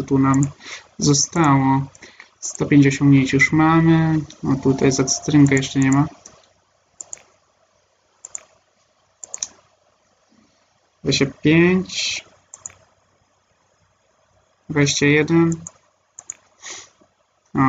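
Soft clicks sound as menu pages turn.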